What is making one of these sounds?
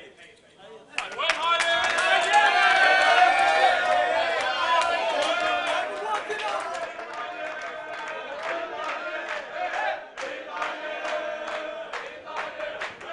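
Men clap their hands in a steady rhythm.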